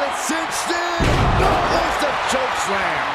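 A heavy body slams down onto a wrestling ring with a deep thud.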